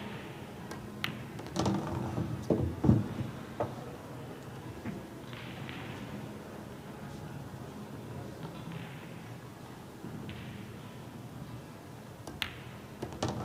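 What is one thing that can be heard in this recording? A cue tip strikes a pool ball with a sharp click.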